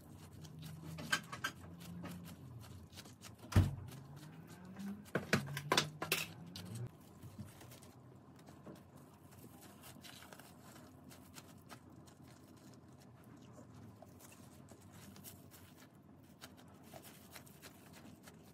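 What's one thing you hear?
Plastic cling film crinkles and rustles as it is wrapped and pressed around soft dough.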